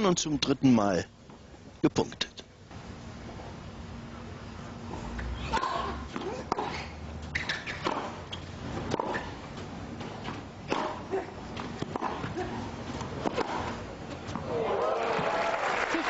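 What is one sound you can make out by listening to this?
A tennis ball is struck with sharp pops back and forth.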